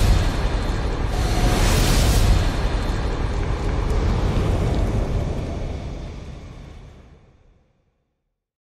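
Flames roar and whoosh loudly, then fade away.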